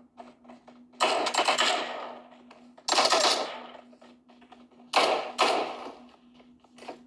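Gunshots from a phone game ring out in loud bursts through the phone's speaker.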